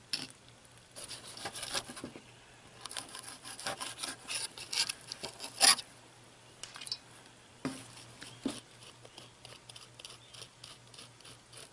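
A knife scrapes and cuts against a wooden board.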